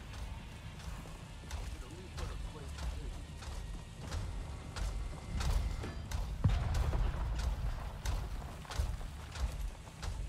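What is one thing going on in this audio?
A gun fires repeated shots.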